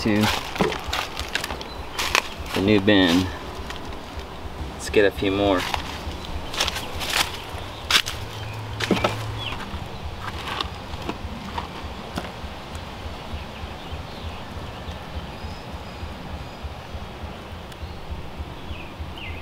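Gloved hands crumble and rustle through damp compost.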